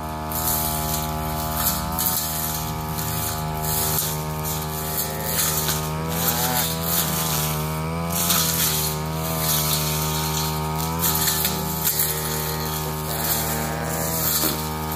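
Brush cutter blades whip through grass and ferns.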